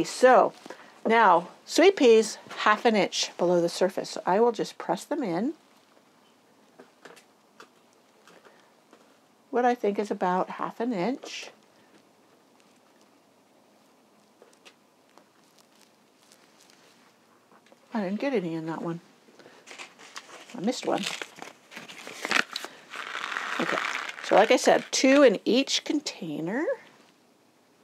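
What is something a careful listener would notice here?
A middle-aged woman speaks calmly and explains, close to a microphone.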